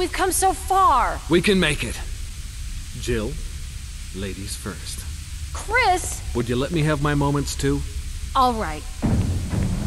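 A young man speaks tensely and with determination, close by.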